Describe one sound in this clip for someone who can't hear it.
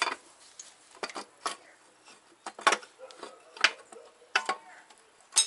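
Hard plastic engine parts knock and clatter.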